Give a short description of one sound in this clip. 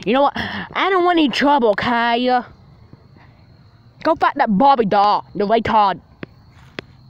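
A child speaks excitedly close by.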